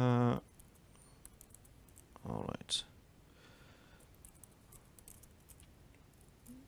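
Keys click on a laptop keyboard.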